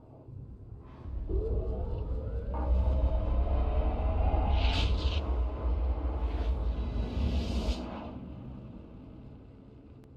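A spaceship's engines build into a deep rumbling whoosh, then fade away.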